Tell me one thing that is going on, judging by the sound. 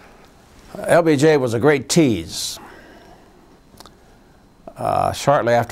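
An elderly man speaks calmly and close to the microphone, with pauses.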